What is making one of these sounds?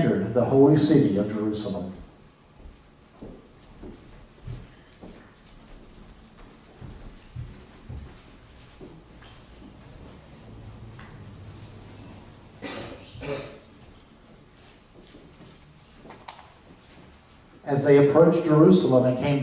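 A piano plays in a large, echoing room.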